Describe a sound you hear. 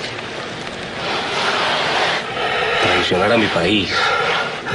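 A man speaks quietly and menacingly close by.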